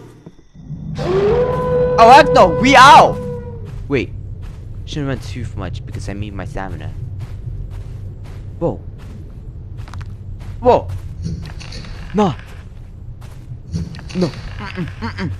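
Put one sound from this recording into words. Footsteps crunch slowly over grass and dirt.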